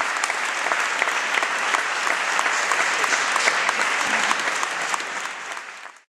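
A crowd applauds close by, then the clapping fades away.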